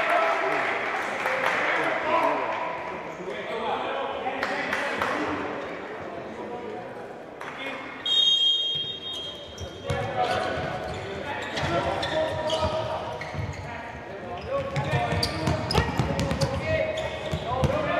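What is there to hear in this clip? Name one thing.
A ball is kicked with a thud on a hard court.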